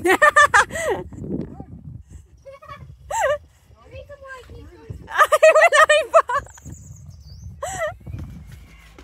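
A child speaks excitedly close by.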